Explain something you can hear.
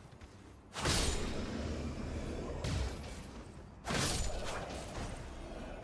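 A sword strikes a foe with heavy crashing blows.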